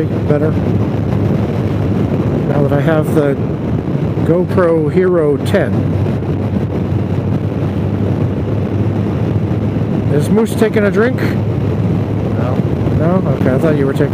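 A motorcycle engine hums steadily at cruising speed.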